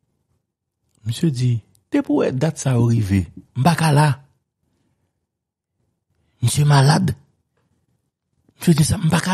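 A middle-aged man speaks with animation over a microphone headset, in bursts with pauses.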